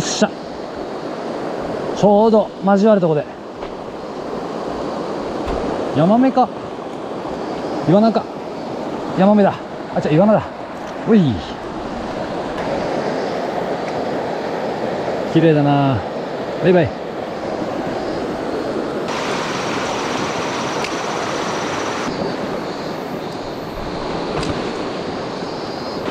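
A shallow stream flows and burbles steadily over stones.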